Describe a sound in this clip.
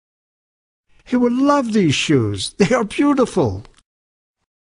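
An elderly man speaks cheerfully.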